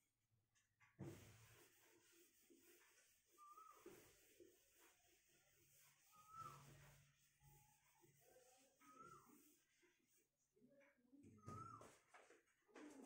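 A felt eraser rubs and squeaks across a whiteboard.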